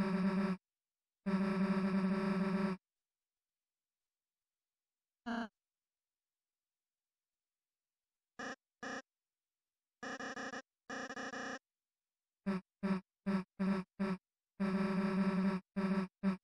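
Rapid, pitched blips chatter in quick bursts as a video game's dialogue text types out.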